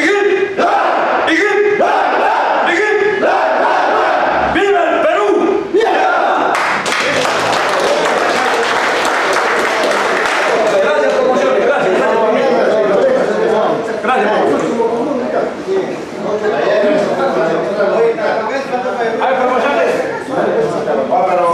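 Men talk and laugh loudly.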